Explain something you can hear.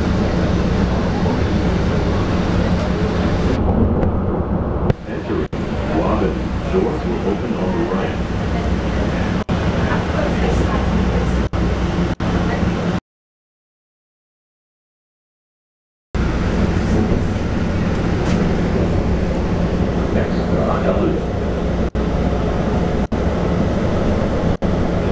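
A train rumbles steadily along its tracks, heard from inside a car.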